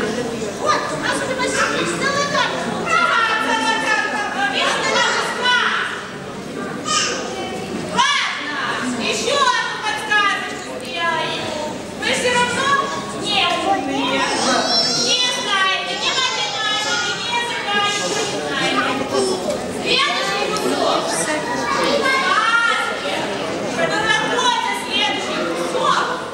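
A man speaks in a deep voice in an echoing hall.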